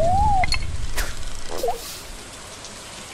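A bobber plops into water.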